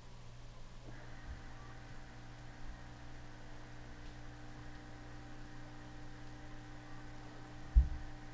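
A video game car engine hums steadily.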